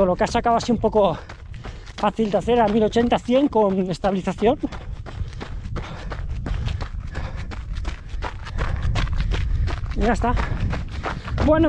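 Footsteps pound on a dirt track at a running pace.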